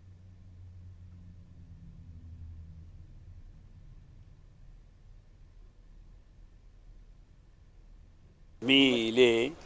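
A car engine hums quietly in traffic.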